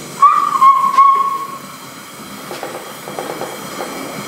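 A gas torch roars with a steady hiss.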